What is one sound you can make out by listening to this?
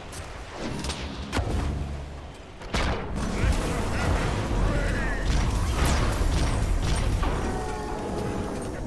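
Magic spells burst and whoosh in quick succession.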